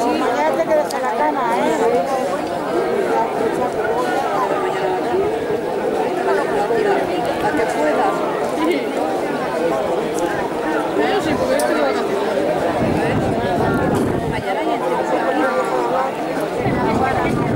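A crowd of men and women talks and calls out outdoors.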